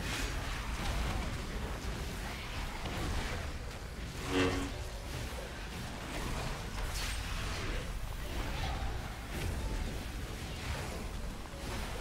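Spell effects whoosh and explode in a busy game battle.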